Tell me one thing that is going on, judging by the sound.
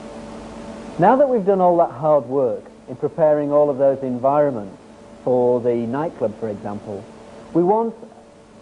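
A young man speaks calmly and clearly into a microphone nearby.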